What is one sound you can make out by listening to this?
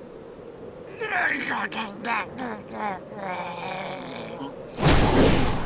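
A small creature speaks hesitantly in a high voice.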